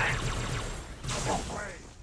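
Gunfire rattles in a video game.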